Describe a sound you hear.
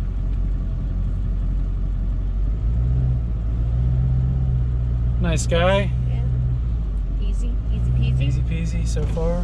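A car engine hums steadily from inside the cabin.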